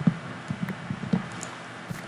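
Blocks crack and crumble as they break.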